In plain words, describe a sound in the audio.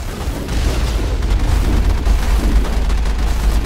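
An explosion booms against an armored vehicle.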